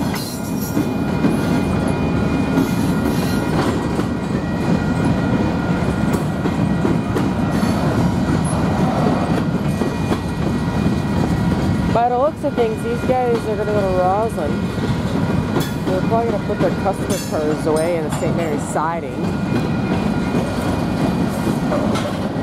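A freight train rumbles past close by with clattering wheels.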